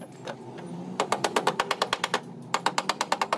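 A hammer taps rapidly on sheet metal.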